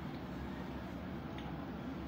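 A woman sips from a mug.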